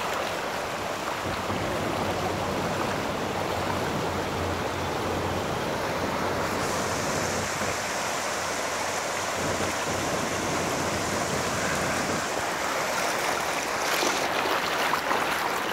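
A swollen river rushes and churns loudly nearby.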